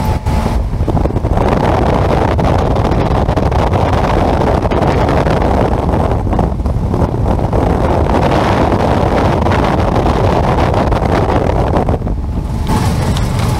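Wind rushes loudly past an open window.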